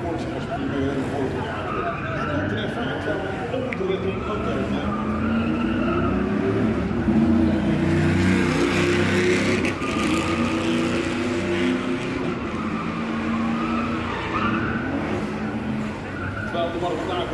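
Tyres screech on the track.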